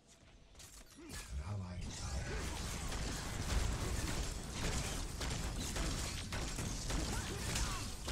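Magic blasts crackle and boom in a fantasy battle.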